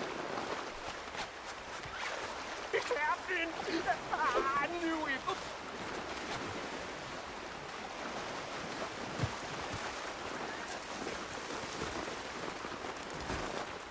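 A river flows steadily nearby.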